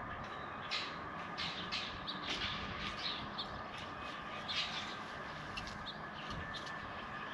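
A rake scrapes and rustles through mulch in short strokes.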